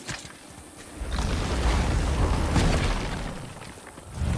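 A heavy stone door scrapes and rumbles open.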